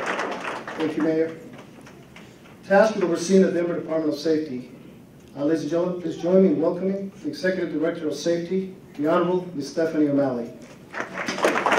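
A man reads out calmly through a microphone.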